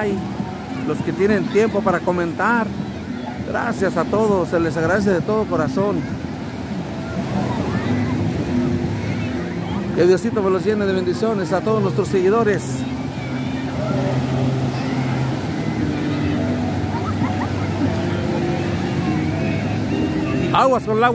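Waves break and wash steadily onto the shore.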